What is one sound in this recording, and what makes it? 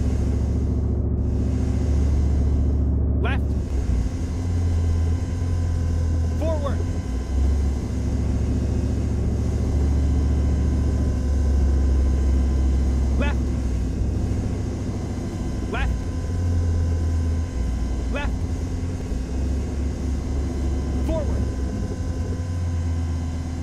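An aircraft engine drones low and steady throughout.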